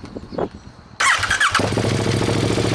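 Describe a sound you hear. A motorcycle engine cranks and starts with a sudden roar.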